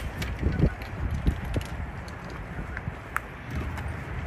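Plastic wheels knock and scrape against stone.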